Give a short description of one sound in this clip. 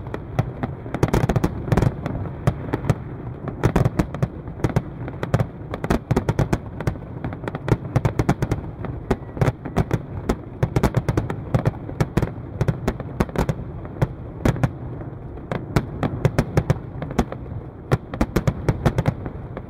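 Low booms of fireworks rumble steadily underneath.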